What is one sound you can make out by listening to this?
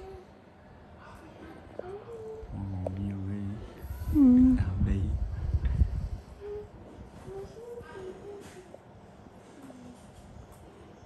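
Metal tweezers click faintly against skin.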